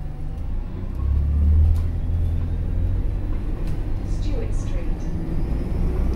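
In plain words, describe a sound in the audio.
A bus engine rumbles low and steady from inside the bus.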